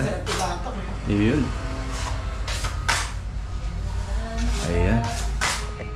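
A putty knife scrapes across a ceiling.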